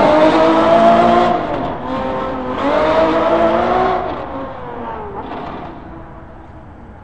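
A sports car engine roars loudly, revving up and shifting gears as it drives away.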